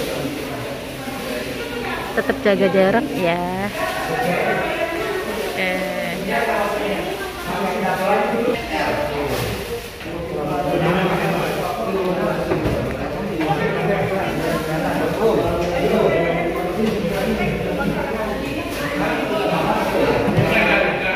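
Many children and adults chatter in a busy room that echoes slightly.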